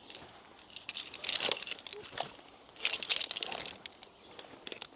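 Rope rustles through branches and needles.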